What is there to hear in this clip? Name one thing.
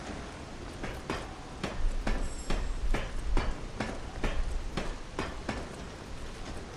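Hands and feet knock on a metal ladder in quick, regular clanks.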